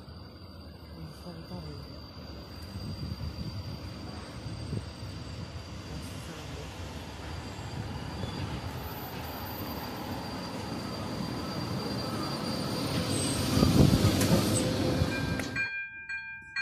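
An electric locomotive approaches and rumbles past close by.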